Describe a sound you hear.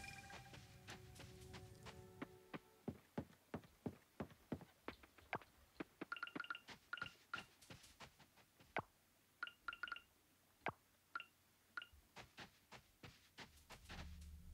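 Light footsteps patter quickly over grass and a wooden bridge.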